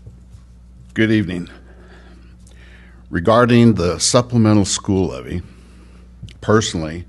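An older man speaks into a microphone in short bursts, pausing between phrases.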